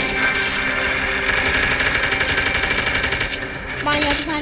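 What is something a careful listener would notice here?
Rapid gunfire rattles from a submachine gun.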